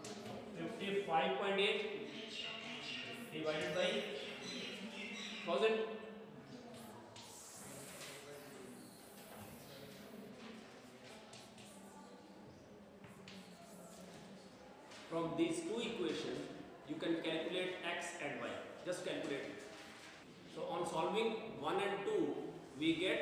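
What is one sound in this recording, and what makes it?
A man speaks calmly, explaining.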